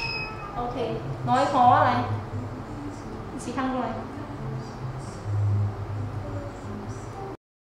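A young woman speaks close by in a lively, cheerful voice.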